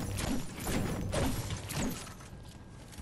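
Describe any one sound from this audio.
A pickaxe strikes wood with heavy thuds.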